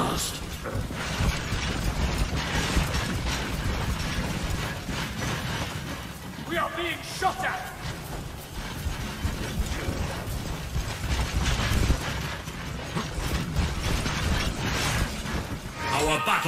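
Battle noise rumbles and clatters as troops fight.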